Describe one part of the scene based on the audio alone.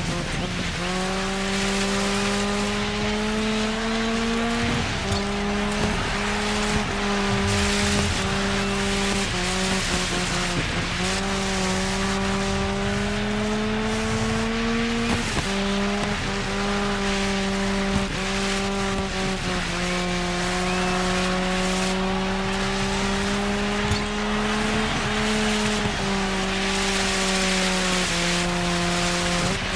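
A rally car engine revs hard, rising in pitch and dropping with each gear change.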